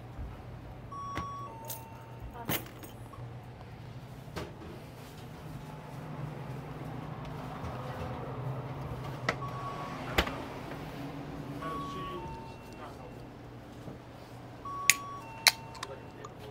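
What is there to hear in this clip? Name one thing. A barcode scanner beeps.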